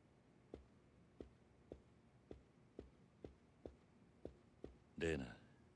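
High heels click steadily on a hard floor.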